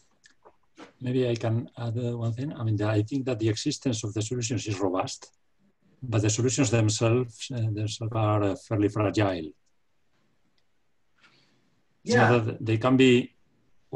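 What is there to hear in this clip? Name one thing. A man speaks calmly and clearly, lecturing.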